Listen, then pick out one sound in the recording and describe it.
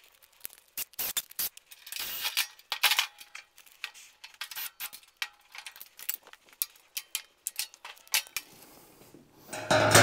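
Tools clink and rattle against metal.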